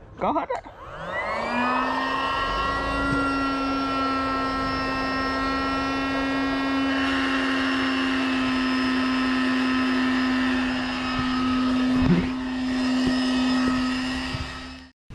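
An electric air pump starts up and hums steadily.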